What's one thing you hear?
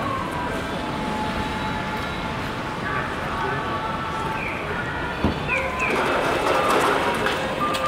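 Traffic hums steadily outdoors on a city street.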